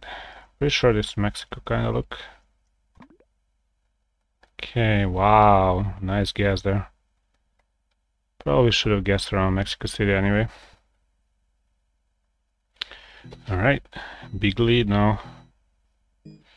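A young man talks casually and close to a microphone, in bursts with pauses.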